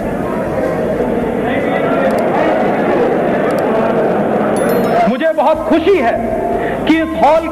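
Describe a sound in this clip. A man speaks forcefully into a microphone, heard through loudspeakers.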